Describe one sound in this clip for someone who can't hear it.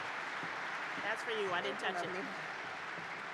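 A middle-aged woman speaks briefly into a microphone in a large hall.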